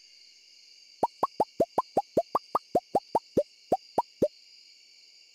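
Soft game menu clicks tick rapidly, one after another.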